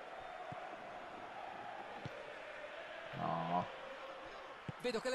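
A football is kicked with short, dull thuds.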